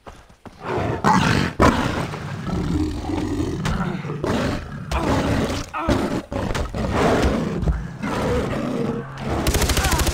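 A big cat snarls and growls fiercely up close.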